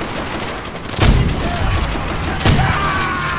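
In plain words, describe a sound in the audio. A rifle fires loud gunshots nearby.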